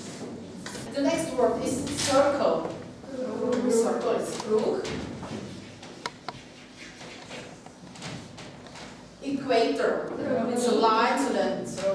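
A woman speaks clearly to a class in a room with a slight echo.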